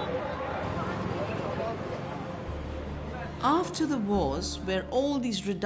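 A crowd of men and women chatter nearby in a narrow street.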